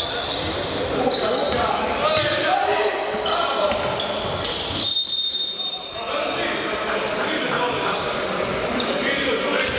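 Young men shout and call out to each other across an echoing hall.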